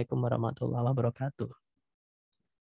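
A man speaks calmly into a close microphone, heard through an online call.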